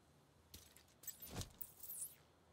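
Boots land with a thud on hard ground.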